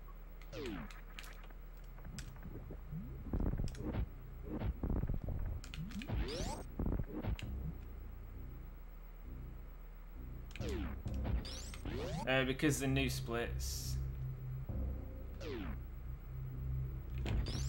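Retro video game sound effects zap and chirp in quick bursts.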